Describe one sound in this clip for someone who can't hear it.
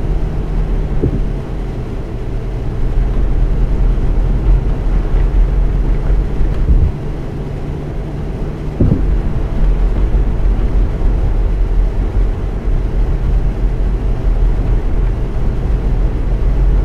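Tyres roll over asphalt.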